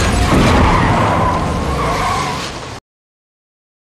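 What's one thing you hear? A car engine roars and tyres screech loudly.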